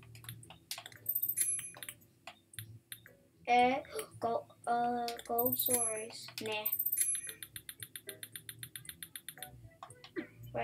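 A game menu chimes and blips with each selection.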